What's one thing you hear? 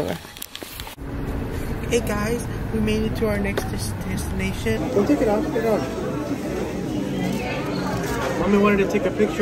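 Many people chatter in a busy, echoing room.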